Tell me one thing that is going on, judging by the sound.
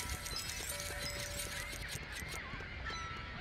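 Small coins clink and chime rapidly as they are picked up.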